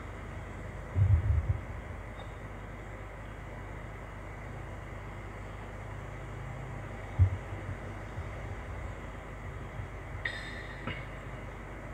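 Low dull thumps of objects being handled near a microphone.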